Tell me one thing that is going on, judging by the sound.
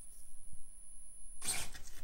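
A small electric motor whirs on a toy car.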